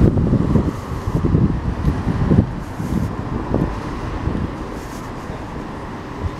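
Footsteps tap on a paved city sidewalk.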